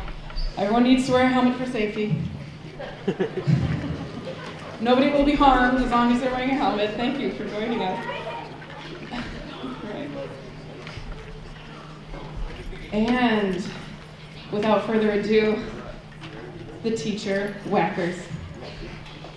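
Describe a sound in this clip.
A young woman talks with animation through a microphone in a large echoing hall.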